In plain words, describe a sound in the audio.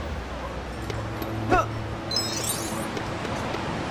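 A pair of doors swings open.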